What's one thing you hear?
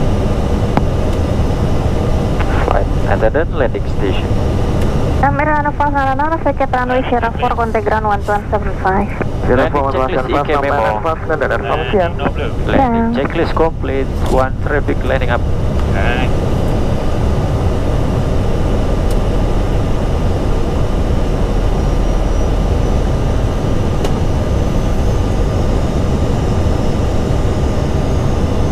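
A steady low engine roar drones throughout.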